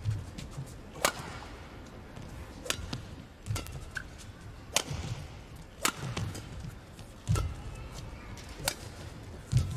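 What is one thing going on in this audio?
A shuttlecock is struck sharply with a racket in a large echoing hall.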